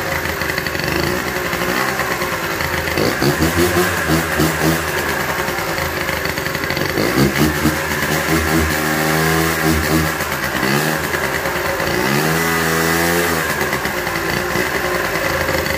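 A screwdriver scrapes and clicks against metal parts.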